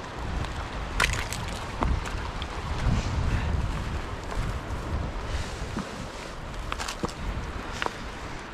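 Ice crunches and cracks underfoot.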